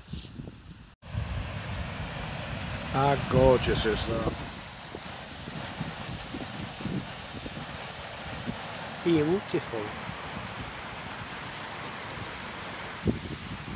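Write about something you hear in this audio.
Water rushes steadily over a small weir.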